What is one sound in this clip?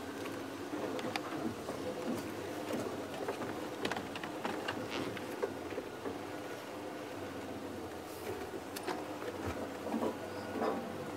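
A vehicle engine idles steadily close by.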